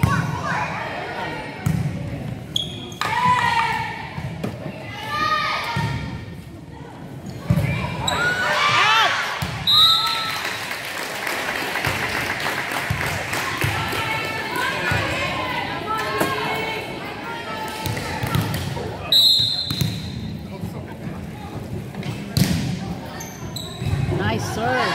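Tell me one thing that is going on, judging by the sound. Young women shout and call out to each other in an echoing gym.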